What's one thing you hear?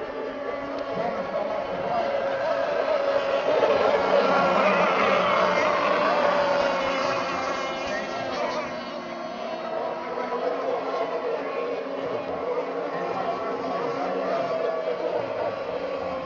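Water sprays and hisses behind a speeding model boat.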